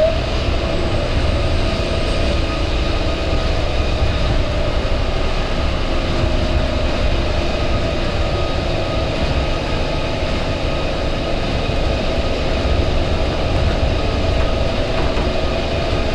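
A train's electric motor whines steadily.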